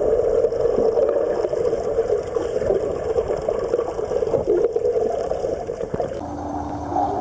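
Water rushes and bubbles, muffled underwater.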